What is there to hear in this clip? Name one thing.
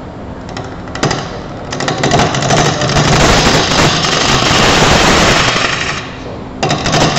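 A chisel scrapes loudly against spinning wood.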